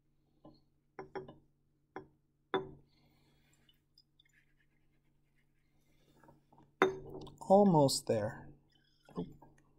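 A glass rod clinks against the inside of a glass flask.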